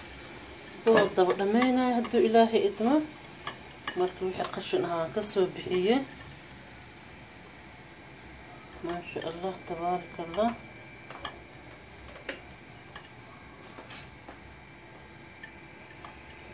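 Dry grains rattle against a glass bowl as a hand scoops them.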